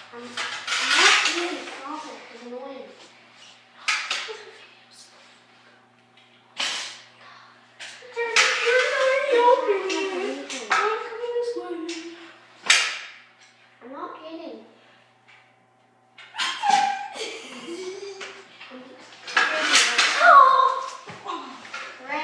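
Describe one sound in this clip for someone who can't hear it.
A child talks and shouts with animation nearby.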